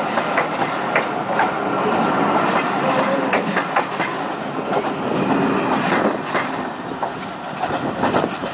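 Passenger coaches roll past close by, wheels clattering over rail joints.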